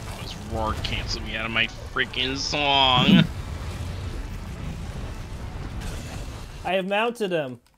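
A deep rumble of fire and blasts roars from a game.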